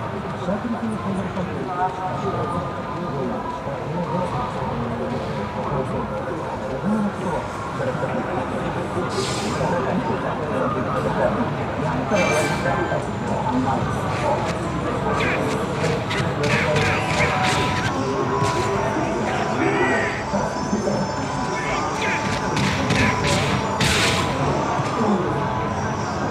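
Game music and gunfire play from a handheld console.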